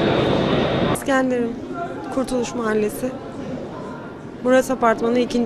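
A woman speaks quietly into a microphone close by.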